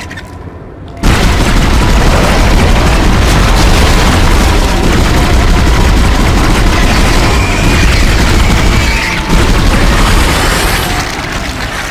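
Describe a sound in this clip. A gun fires repeated loud shots.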